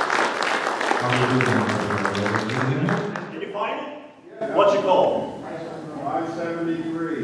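Several men sing together in harmony through microphones.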